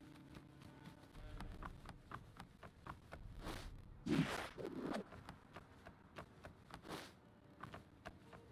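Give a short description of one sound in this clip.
Quick footsteps run across wooden boards.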